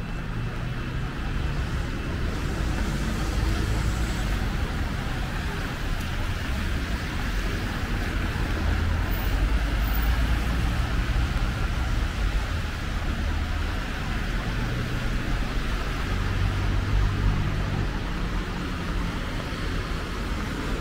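A lorry engine idles and rumbles nearby.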